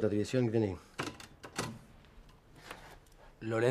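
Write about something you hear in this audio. Typewriter keys clack a few times.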